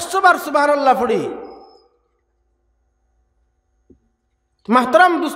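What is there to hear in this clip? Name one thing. A man preaches forcefully into a microphone, heard through a loudspeaker.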